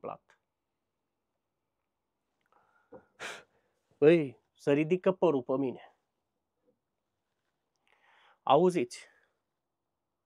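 A man speaks calmly, close by, in short bursts with pauses.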